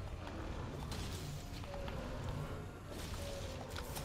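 A blade slashes and strikes a large creature.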